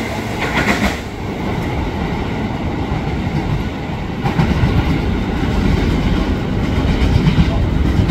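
Another train rolls slowly in with a low rumble.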